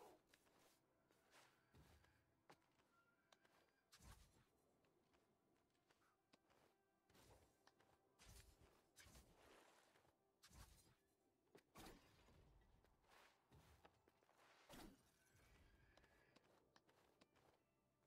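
Footsteps patter and land with soft thuds as a figure runs and jumps.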